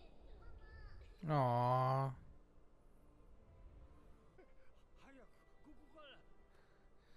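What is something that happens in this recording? A young woman speaks softly and cheerfully close to a microphone.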